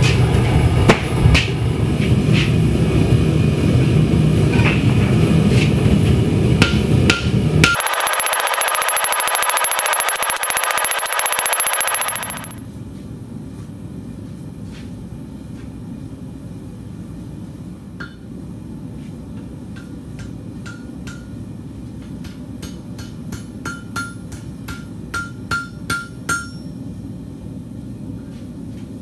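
A gas forge roars steadily.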